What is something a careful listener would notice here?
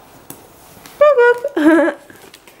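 A young girl speaks happily, close by.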